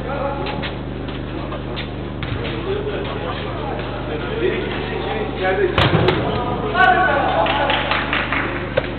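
Young men call out and shout to each other across a large echoing hall.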